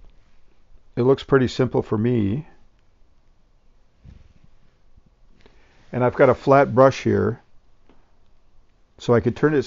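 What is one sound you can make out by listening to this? An elderly man speaks calmly and close by, in short phrases.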